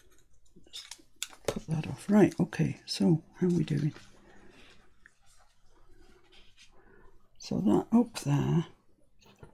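Paper rustles and slides under hands.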